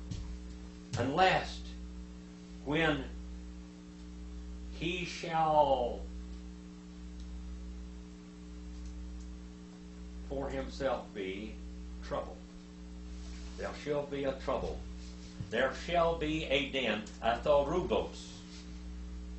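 An elderly man speaks slowly and calmly into a nearby microphone, with long pauses.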